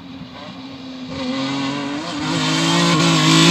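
A rally car engine revs and approaches from afar.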